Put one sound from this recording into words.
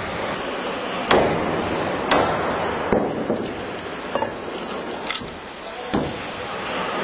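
A mallet knocks sharply on a blade driven into wood.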